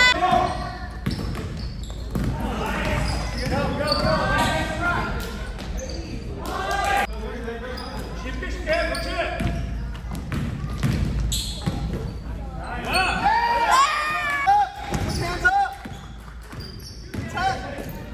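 Men shout and call out across a large echoing gym.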